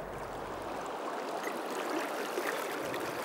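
Water rushes and swirls around a wader's legs.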